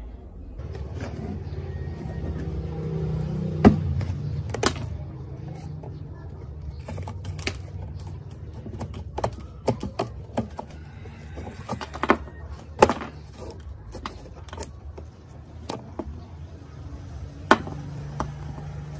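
Hands knock and rub against a plastic casing.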